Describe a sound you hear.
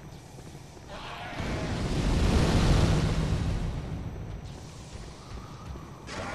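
Flames roar in a loud burst.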